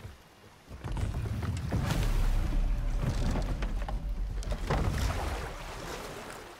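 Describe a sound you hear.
A wooden boat thuds and creaks as a heavy man steps into it.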